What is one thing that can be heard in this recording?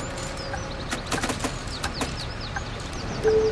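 Coins clink and rattle into a tray.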